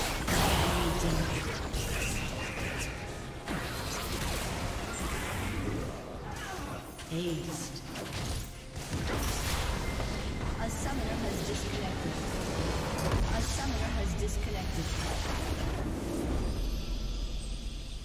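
Magic blasts, hits and whooshes clash in rapid, busy bursts.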